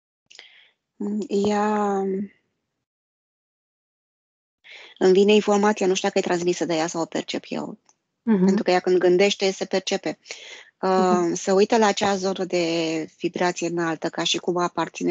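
A woman speaks calmly and softly over an online call.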